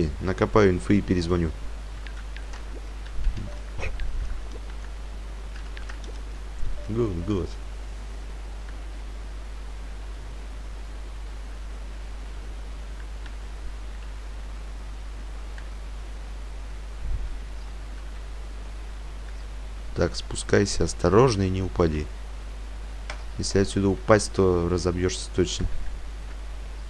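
A young man talks casually and close into a microphone, in short bursts.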